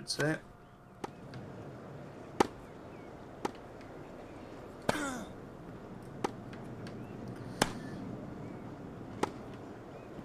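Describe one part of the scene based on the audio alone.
A tennis ball is struck back and forth with sharp pops.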